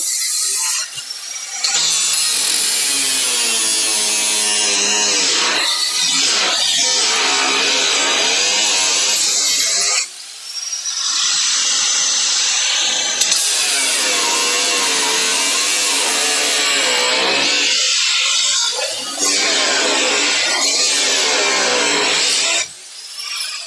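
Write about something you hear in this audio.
An angle grinder screeches loudly against sheet metal.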